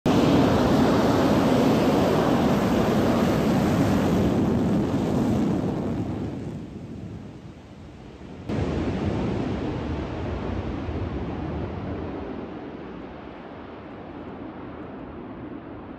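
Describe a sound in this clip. A jet engine roars loudly as a fighter plane speeds down a runway and fades into the distance.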